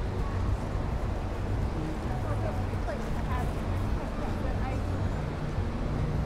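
People chatter faintly in the distance.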